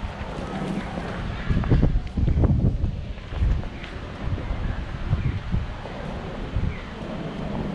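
Footsteps thud on pavement at a walking pace.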